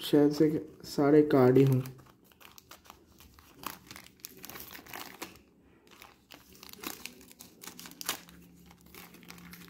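Scissors snip through a crinkly foil wrapper.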